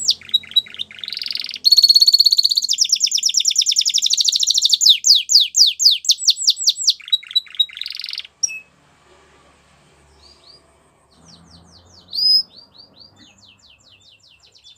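A canary sings loudly close by with rapid trills and chirps.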